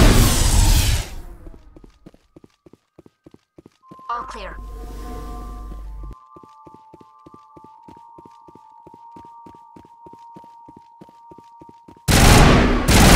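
Footsteps tap steadily on a metal floor.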